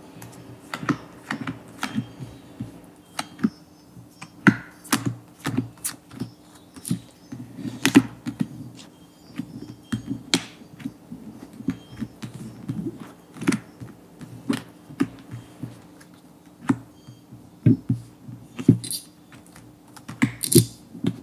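Cards rustle and slide against each other as a hand handles a deck.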